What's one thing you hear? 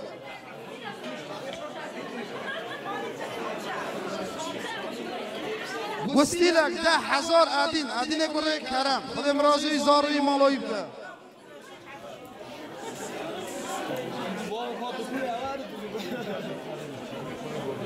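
Several men talk nearby.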